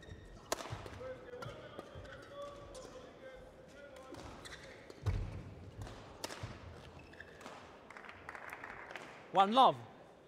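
Badminton rackets sharply hit a shuttlecock back and forth in a large echoing hall.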